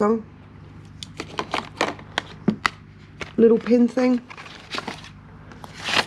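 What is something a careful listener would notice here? Cardboard and paper rustle softly as they are handled.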